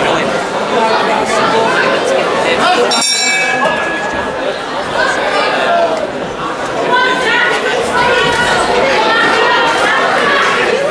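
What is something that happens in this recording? A crowd of men and women shout and cheer in an echoing room.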